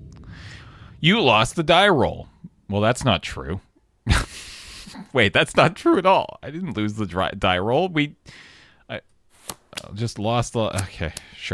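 An adult man talks with animation, close to a microphone.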